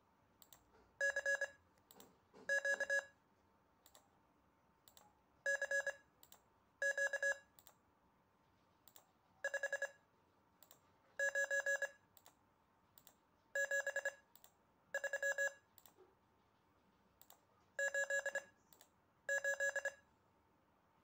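Morse code beeps play in quick bursts from a computer speaker.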